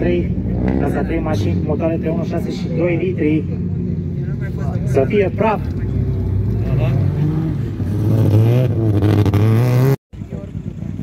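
A rally car engine roars and revs hard as the car races past nearby.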